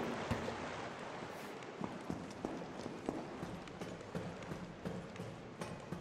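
Footsteps thud and splash on a wet stone floor.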